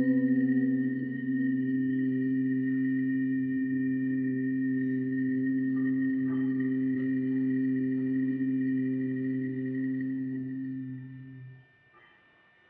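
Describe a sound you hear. A man chants one long, steady, low note close by, then falls silent.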